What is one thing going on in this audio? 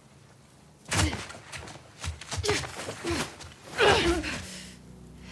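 Loud thuds and scuffling of a close struggle.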